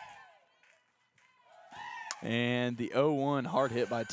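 A metal bat cracks against a softball.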